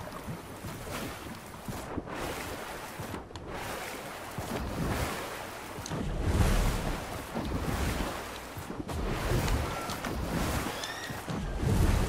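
Water splashes as a game character wades and swims.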